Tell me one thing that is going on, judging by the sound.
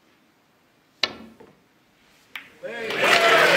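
A snooker cue strikes a ball with a sharp click.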